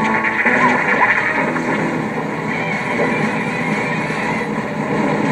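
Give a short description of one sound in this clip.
Battle sound effects clash and whoosh from a mobile game.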